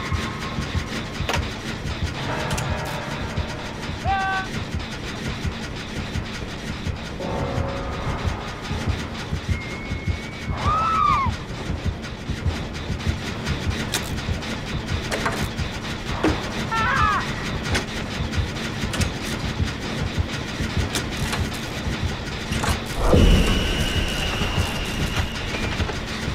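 Metal parts of an engine clank and rattle as they are worked on.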